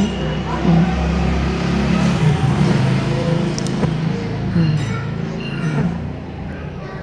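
An elderly woman speaks slowly and close by.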